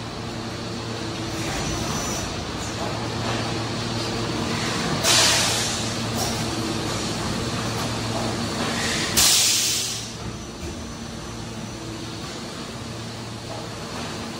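A large machine hums steadily.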